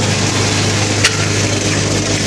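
A plastic mould knocks down onto a concrete floor.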